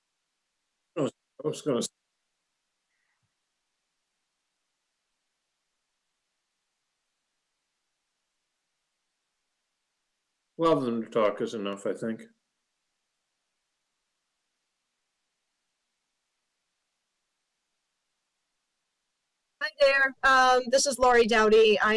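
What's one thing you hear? Men speak calmly over an online call.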